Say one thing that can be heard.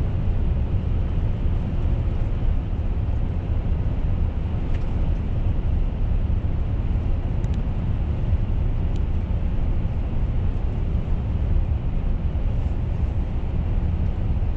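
A truck engine rumbles steadily from inside the cab while driving.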